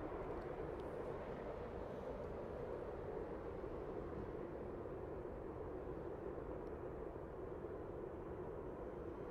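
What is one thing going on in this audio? A long train rumbles steadily in the distance.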